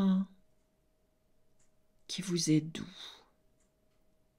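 An older woman speaks calmly and softly, close to a microphone.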